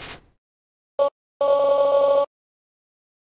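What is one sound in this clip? Higher, tuneful electronic beeps chirp in a short burst.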